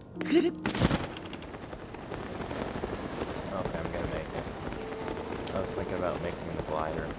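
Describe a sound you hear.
Wind rushes steadily past during a glide.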